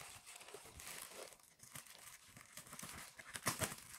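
Scissors snip through plastic and tape.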